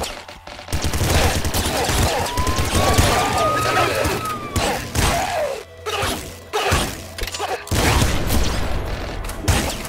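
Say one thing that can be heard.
Rapid laser gunfire zaps and crackles.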